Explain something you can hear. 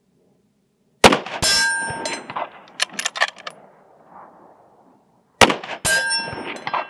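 A rifle fires loud shots that echo off the hills outdoors.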